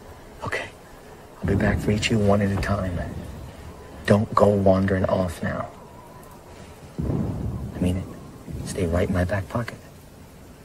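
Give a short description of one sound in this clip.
A young man answers quietly, close by.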